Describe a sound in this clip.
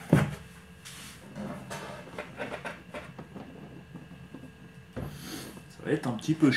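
A cardboard box is handled with soft scrapes and thumps.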